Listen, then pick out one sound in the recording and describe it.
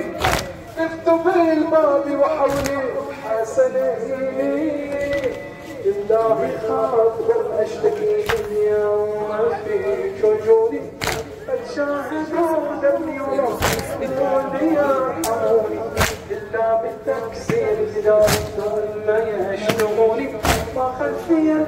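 A crowd of men beat their chests in unison with loud slaps at a slow, steady pace.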